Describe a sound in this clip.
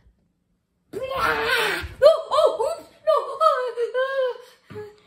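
A young boy shouts excitedly.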